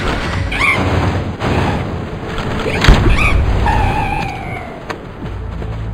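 A bird-like creature squawks.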